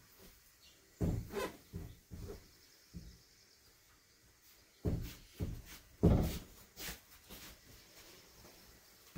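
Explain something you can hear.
Footsteps pad softly across straw mats.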